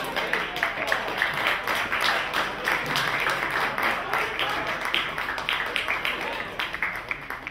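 Spectators cheer loudly.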